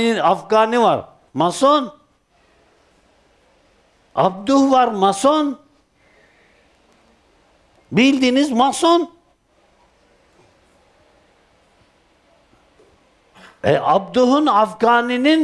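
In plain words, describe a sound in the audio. An elderly man speaks slowly and calmly in short phrases, with pauses between them.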